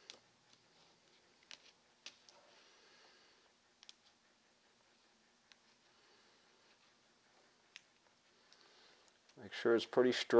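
Masking tape crinkles and rustles as it is pressed down.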